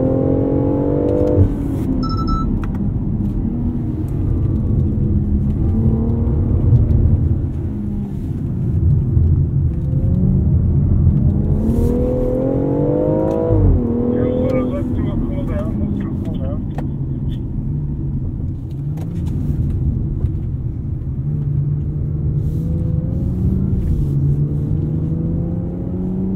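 A car engine revs up and down, rising and falling as the car speeds up and slows.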